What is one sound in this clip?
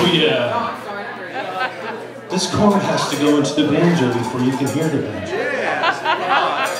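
A banjo is strummed.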